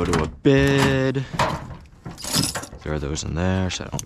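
A metal toolbox lid clunks open.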